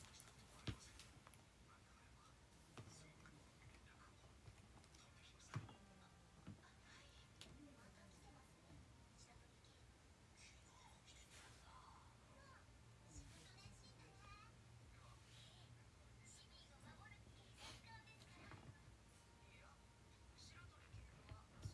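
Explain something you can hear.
A young woman speaks quietly and calmly, close to a microphone.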